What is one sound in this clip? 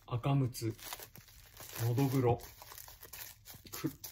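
Plastic wrap crinkles softly as a hand touches it.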